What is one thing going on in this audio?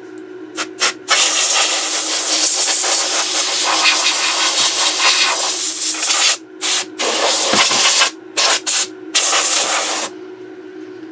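A spray can hisses loudly in long bursts, close by.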